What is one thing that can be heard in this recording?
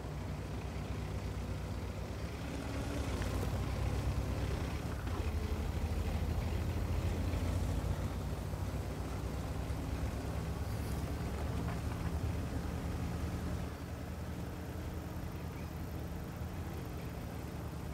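Tank tracks clatter over the ground.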